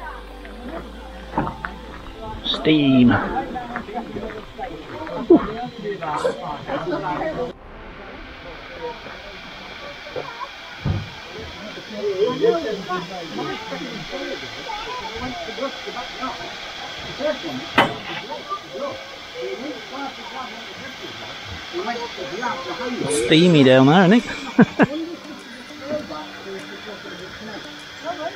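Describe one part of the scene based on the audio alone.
A steam locomotive hisses steadily as steam escapes.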